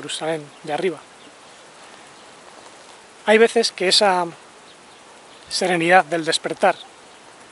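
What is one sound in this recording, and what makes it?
A man speaks close by in short bursts, calmly.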